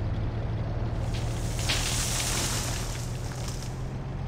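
Bushes crash and rustle as a tank pushes through them.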